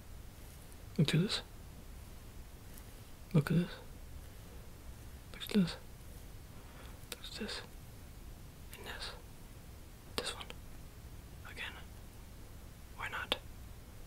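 A young man makes short, soft breathy mouth sounds close to the microphone.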